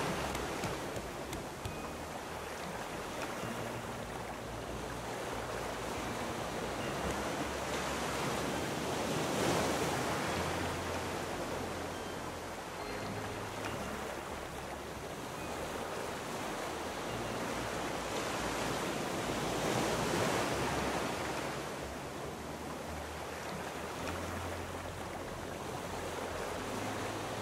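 Ocean waves wash and swell steadily all around.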